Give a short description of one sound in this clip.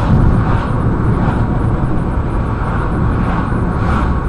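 A car passes close by in the other direction.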